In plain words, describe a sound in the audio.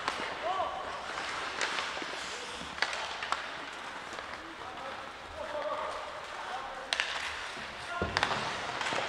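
Skates scrape and hiss on the ice.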